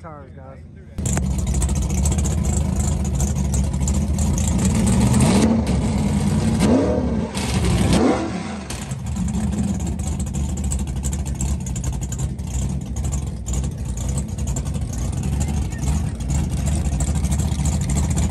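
A truck engine idles loudly close by with a deep rumble.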